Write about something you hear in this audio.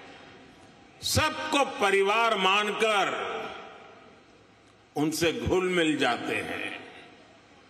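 An elderly man speaks slowly and deliberately into a microphone in a large echoing hall.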